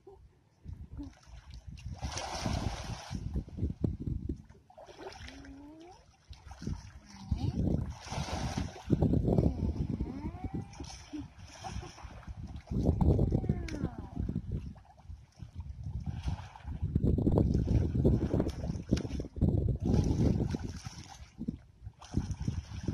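Water splashes close by.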